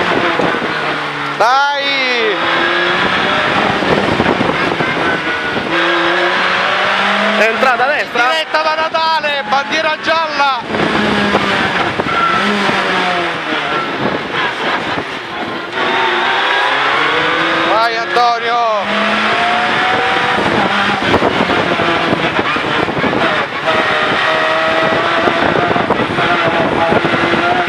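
A race car engine roars loudly from inside the cabin, revving up and down through gear changes.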